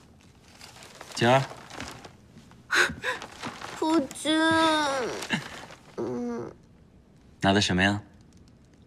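A young woman calls out happily.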